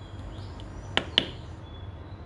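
A plastic dial clicks twice as it is turned.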